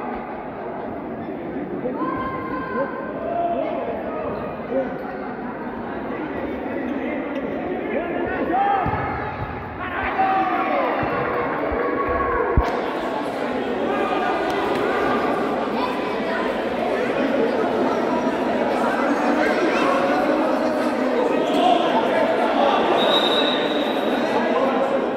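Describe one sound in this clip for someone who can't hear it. Young men shout to each other while playing.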